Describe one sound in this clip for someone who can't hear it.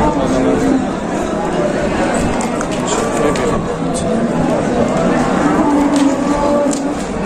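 A crowd of men and women talks all around outdoors.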